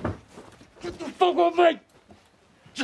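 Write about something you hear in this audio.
A young man cries out and gasps in a struggle.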